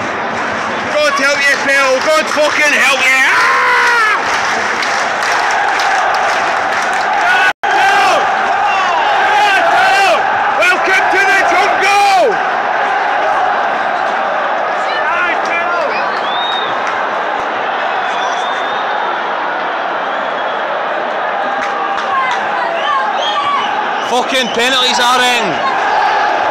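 A man close by shouts and sings along.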